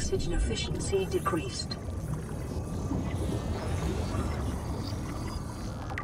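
A handheld scanner whirs as it scans.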